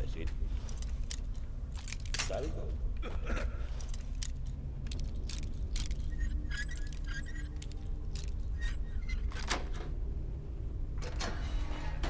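Small metal clicks and scrapes of a lock being picked.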